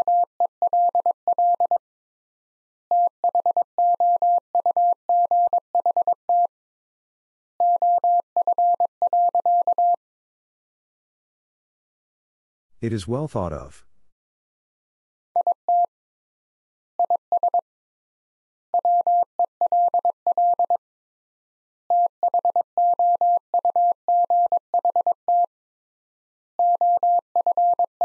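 A telegraph key taps out steady Morse code beeps in quick bursts.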